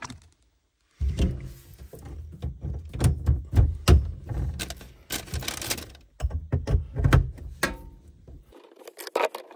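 Metal hose fittings clink and scrape as they are tightened by hand.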